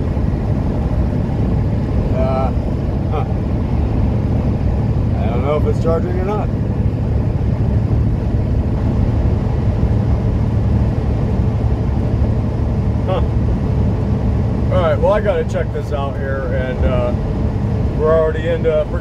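A truck engine rumbles steadily while driving at speed.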